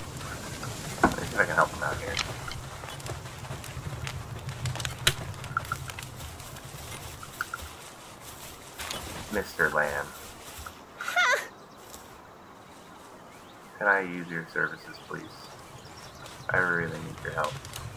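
A young man talks casually into a close microphone, in short bursts.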